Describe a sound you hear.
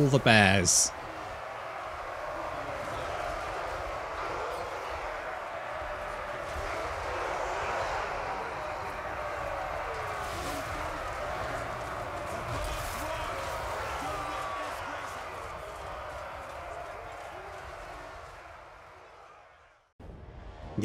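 A large army roars and clashes in battle, then fades away.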